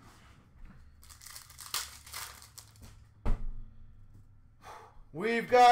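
Plastic wrappers rustle and crinkle as hands sort through them.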